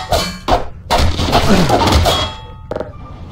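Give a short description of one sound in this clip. Wooden boards crack and splinter.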